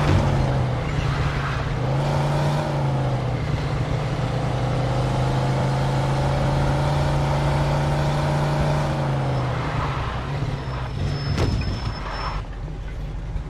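A car engine roars steadily, then revs up and down.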